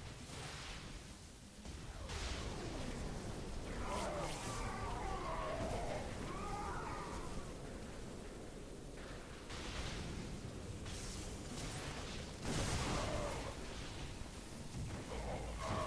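Laser blasts and energy weapons fire in rapid bursts.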